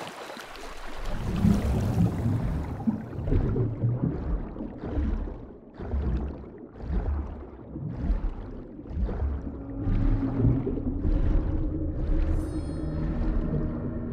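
Muffled underwater swimming strokes whoosh in a steady rhythm.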